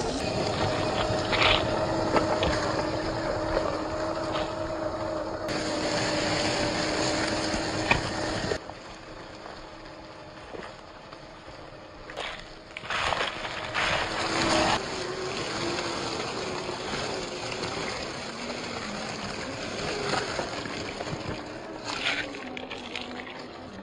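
Tyres scrape and knock over rock.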